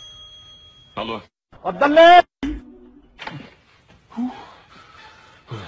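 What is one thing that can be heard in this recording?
A man talks on a phone.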